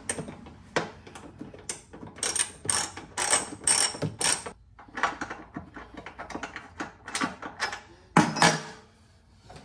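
A screwdriver clicks and scrapes as screws come loose.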